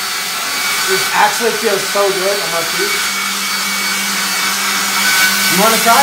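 A young man talks over the roar of a hair dryer.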